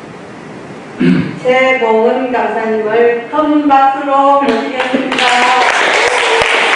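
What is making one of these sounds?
An elderly woman sings into a microphone.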